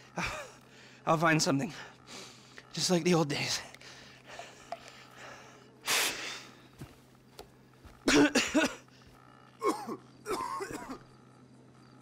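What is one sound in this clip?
A middle-aged man answers with animation.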